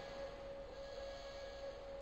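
A tank engine hums steadily nearby.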